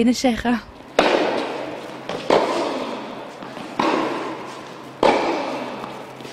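A tennis racket strikes a ball, with the echo ringing through a large indoor hall.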